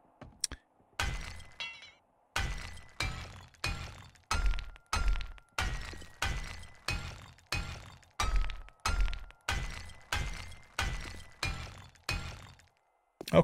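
A hammer bangs on blocks over and over in a quick, steady beat.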